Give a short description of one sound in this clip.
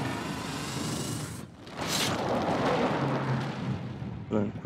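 A heavy stone door grinds and breaks apart with a rumble.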